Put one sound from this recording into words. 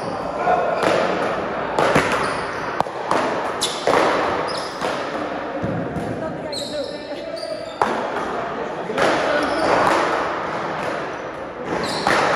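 Paddles strike a ball with sharp pops, echoing in a large hard-walled hall.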